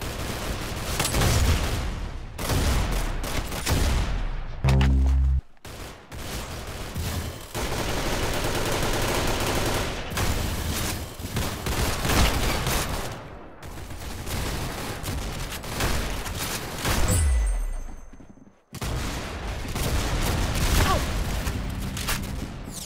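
Gunshots crack repeatedly from a video game.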